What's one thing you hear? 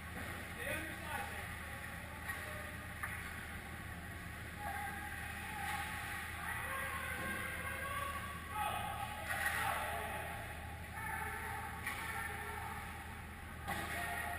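Skates scrape and hiss on ice in a large echoing hall.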